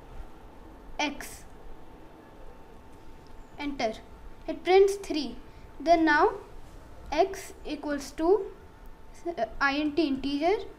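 A boy speaks calmly, close to a microphone.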